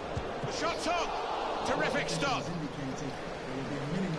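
A crowd cheers loudly and the noise swells.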